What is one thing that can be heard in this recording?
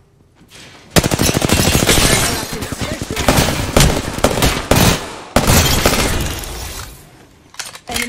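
Rapid gunfire blasts loudly and continuously.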